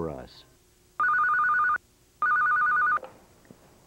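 A desk phone rings with a warbling electronic tone, twice.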